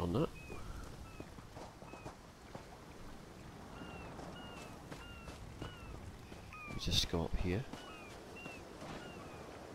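Footsteps run quickly over grass and earth.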